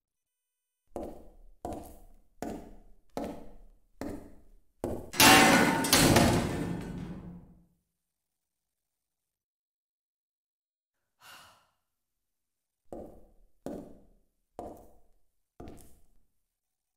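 Footsteps thud slowly on a hard floor.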